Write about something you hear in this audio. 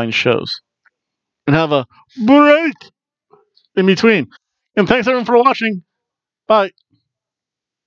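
A middle-aged man talks with animation into a headset microphone, close up.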